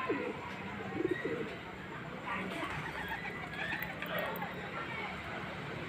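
A pigeon's wings flap loudly as it takes off.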